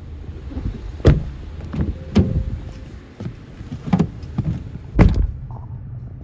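A car door opens and slams shut with heavy thuds.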